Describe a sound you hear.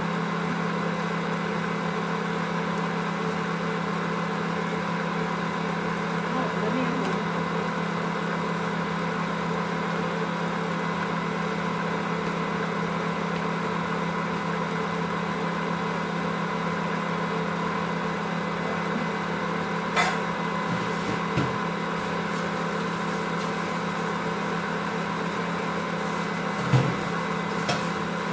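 A kitchen mixer whirs steadily.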